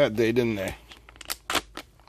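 A blade slices through a plastic bag.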